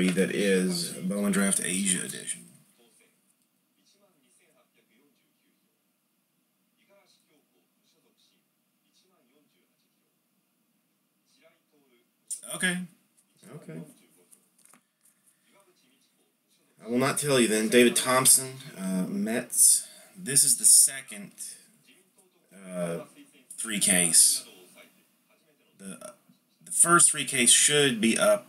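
Trading cards rustle and slide softly between fingers.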